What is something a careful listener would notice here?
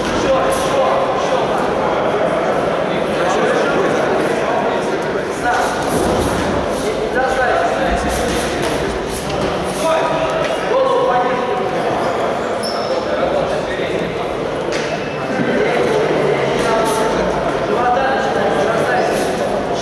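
A crowd of men and women talks and calls out nearby in a large echoing hall.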